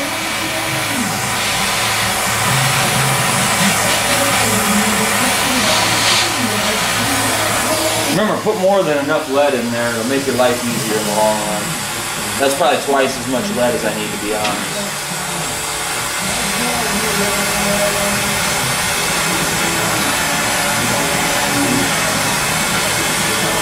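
A gas torch hisses and roars steadily.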